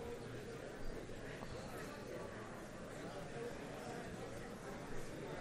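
A middle-aged man speaks calmly into a microphone in a large room.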